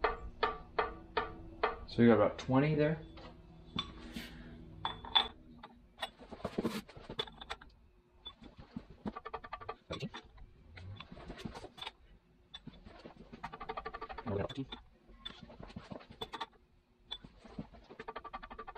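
Metal gears click and tick as they are turned by hand.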